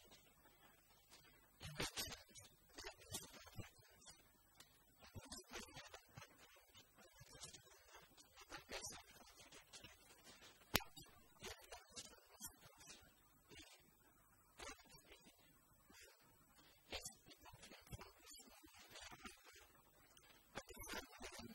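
A man speaks calmly to an audience through a microphone in a large echoing hall.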